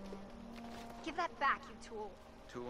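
A young woman speaks sharply.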